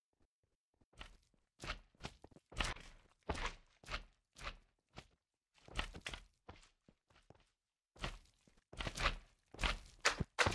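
A sword strikes a squishy creature with soft, wet thuds.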